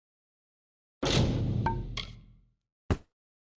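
A game chime sounds when an action fails.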